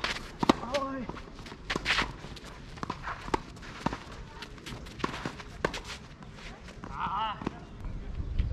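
Tennis balls are struck with rackets in a rally outdoors.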